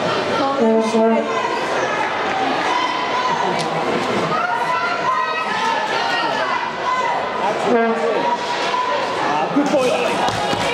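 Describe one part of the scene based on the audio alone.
Ice hockey sticks clack against a puck and the ice.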